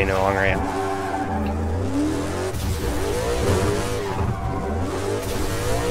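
Car tyres screech as the car skids.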